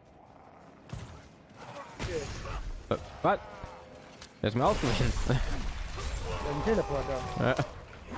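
Magic blasts crackle and boom during a fight.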